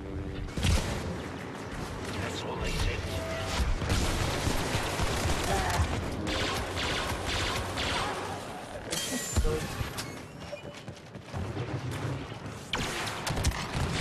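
Lightsabers hum and buzz.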